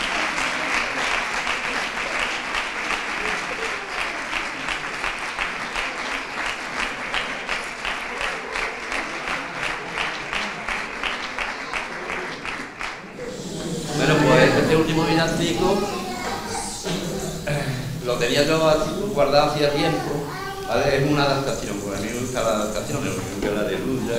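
Acoustic guitars strum along with the singing.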